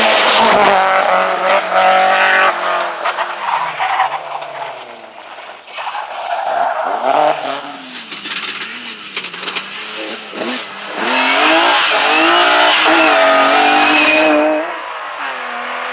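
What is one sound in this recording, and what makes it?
A second car's engine roars as it accelerates away.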